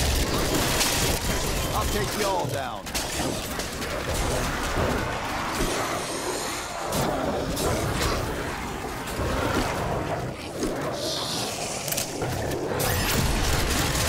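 A ray gun hums and crackles with electric zaps.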